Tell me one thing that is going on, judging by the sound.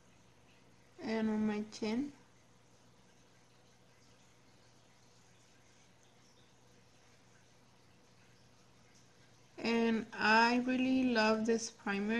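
A young woman speaks calmly and close up, in short bursts.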